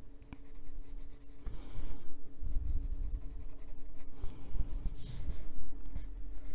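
A coloured pencil scratches softly across paper.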